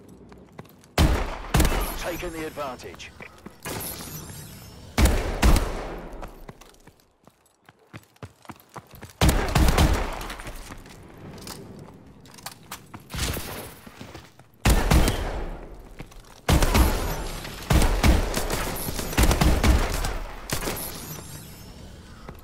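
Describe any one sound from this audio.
Gunshots crack in loud, echoing bursts.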